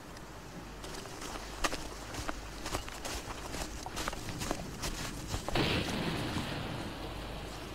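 Footsteps crunch on dry sand.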